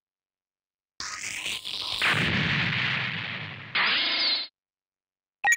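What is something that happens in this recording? A crackling electric zap sweeps past.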